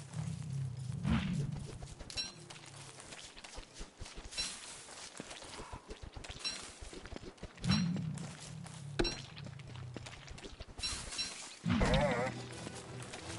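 Short game sound effects thud and chime now and then.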